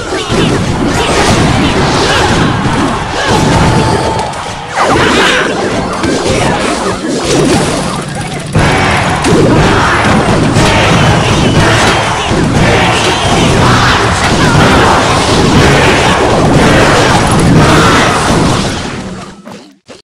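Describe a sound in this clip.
Battle sound effects from a mobile strategy game clash and burst.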